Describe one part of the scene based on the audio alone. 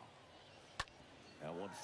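A bat sharply cracks against a baseball.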